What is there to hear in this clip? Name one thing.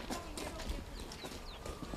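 Boots shuffle and crunch as soldiers walk.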